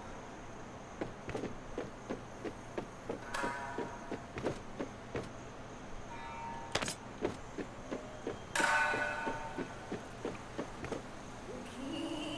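Footsteps patter quickly and evenly on wooden boards.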